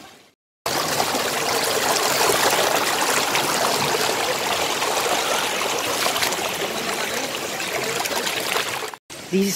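A shallow stream rushes and babbles over stones close by.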